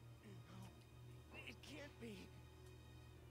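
A young man speaks in a shaky, shocked voice.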